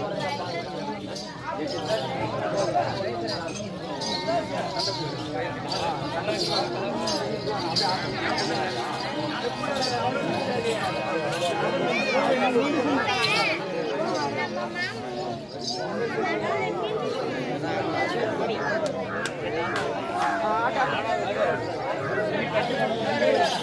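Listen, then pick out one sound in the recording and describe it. A crowd of men, women and children talks and calls out loudly outdoors.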